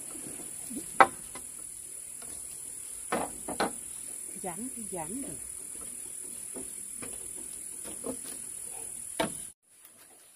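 Bamboo poles knock and clatter against each other close by.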